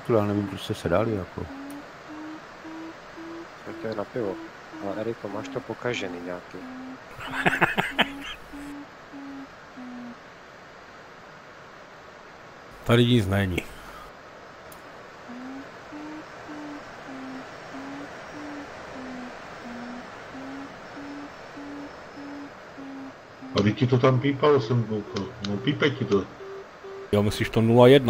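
A variometer beeps in a rapid, rising and falling series of tones.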